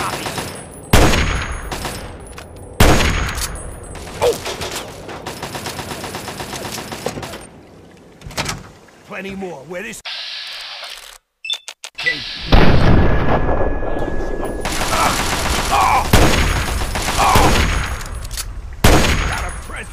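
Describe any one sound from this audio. A rifle fires loud gunshots that echo.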